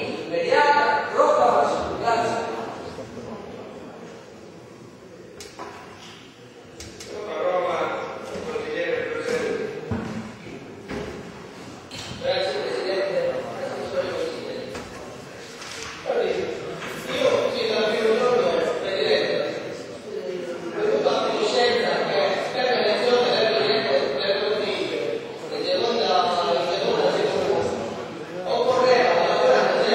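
An elderly man speaks loudly and with animation into a microphone in a large echoing hall.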